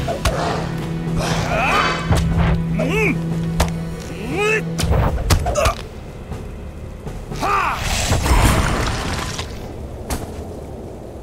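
Magic blasts and weapon blows crash loudly in a fight.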